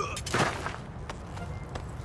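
A man punches another man with heavy thuds.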